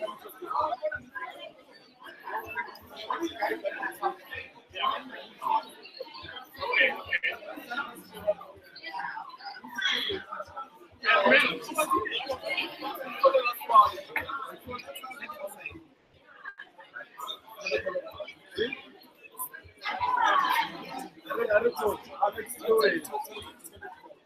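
A crowd of men and women talk and chatter nearby.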